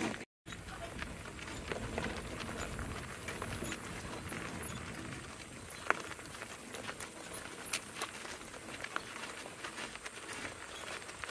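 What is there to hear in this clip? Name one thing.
Cart wheels crunch and rattle over gravel.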